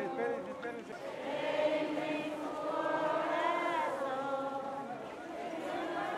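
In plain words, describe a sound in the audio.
Men and women in a large outdoor crowd chatter nearby.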